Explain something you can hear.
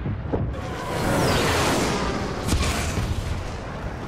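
A jetpack roars with a loud rushing blast.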